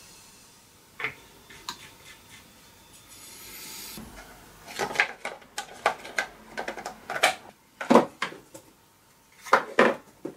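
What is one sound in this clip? Metal engine parts clunk and clatter as they are handled.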